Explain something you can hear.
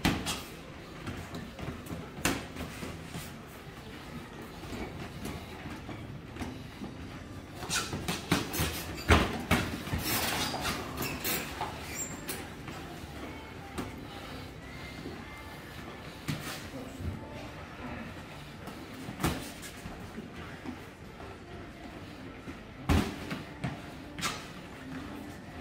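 Sneakers squeak and shuffle on a canvas floor.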